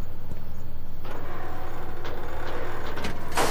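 A metal grate rattles and scrapes as it is pulled.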